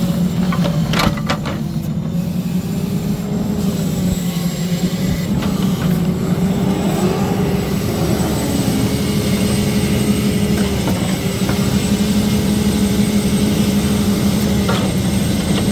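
Metal knocks and clanks sharply a few times.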